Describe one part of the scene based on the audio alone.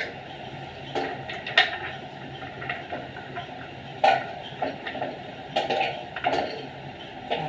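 Nuts clatter into a steel cup.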